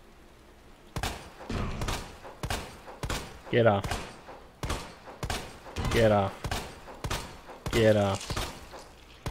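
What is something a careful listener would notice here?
A handgun fires shot after shot, loud and sharp, with short gaps between shots.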